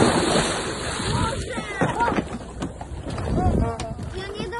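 Water churns and bubbles after the splash.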